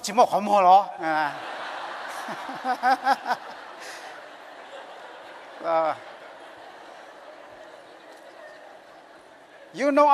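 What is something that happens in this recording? A crowd laughs.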